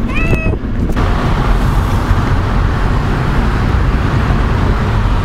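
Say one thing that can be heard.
Traffic roars past outside an open car window.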